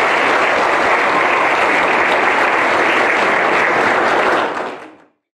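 An audience applauds loudly in a large hall, then the applause fades away.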